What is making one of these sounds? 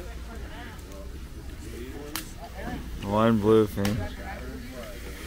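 Several men talk in low voices outdoors.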